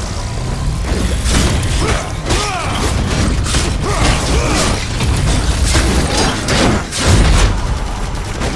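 Heavy weapon blows clash and thud against a large monster.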